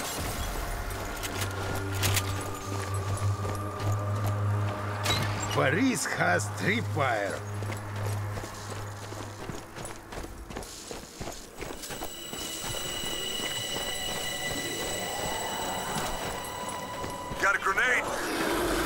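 Footsteps run over stone.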